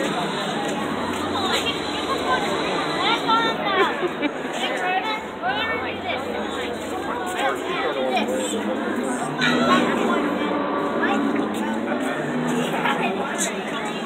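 A young boy shouts and laughs excitedly close by.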